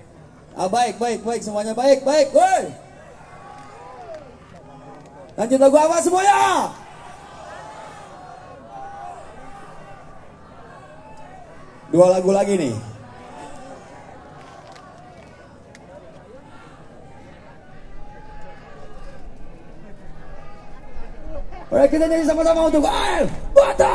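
A man shouts loudly into a microphone over loudspeakers.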